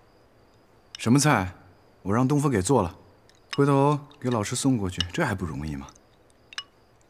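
A young man speaks in a relaxed voice, close by.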